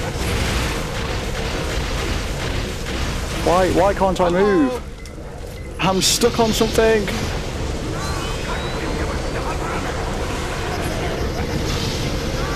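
Energy beams crackle and hum as they fire.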